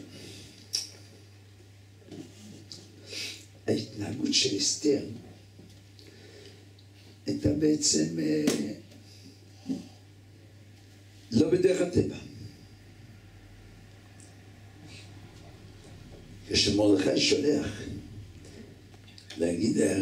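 An elderly man speaks into a microphone with animation, in bursts with pauses.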